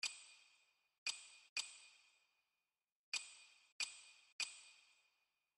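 Short bright menu chimes tick one after another.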